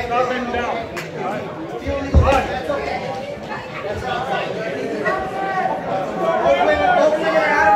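A man speaks loudly nearby.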